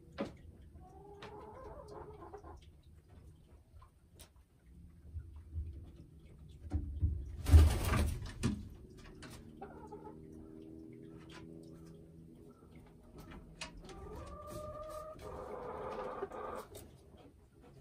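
A hen clucks and croons softly nearby.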